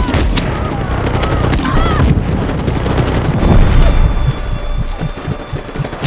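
An explosion booms and echoes.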